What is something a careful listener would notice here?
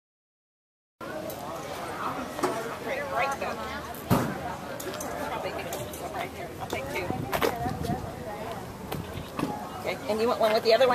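Men and women chat casually nearby outdoors.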